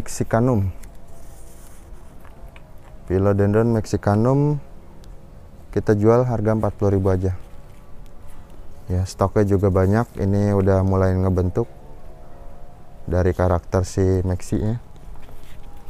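A young man talks calmly and close by, in short phrases with pauses.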